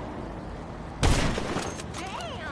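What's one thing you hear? A rifle shot cracks once.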